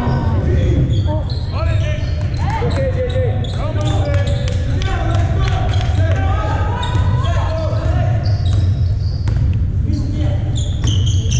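Voices chatter in a large echoing hall.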